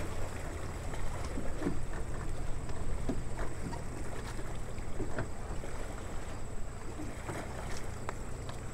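A small motorboat's engine hums steadily in the distance.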